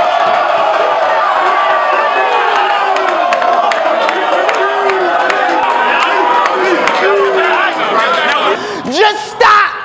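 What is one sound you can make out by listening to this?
A large crowd shouts and cheers loudly.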